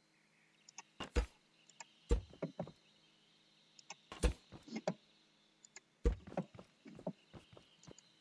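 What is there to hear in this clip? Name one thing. Game blocks are placed with short thuds.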